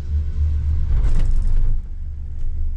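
A gondola cabin rattles and clatters as it rolls past a lift tower.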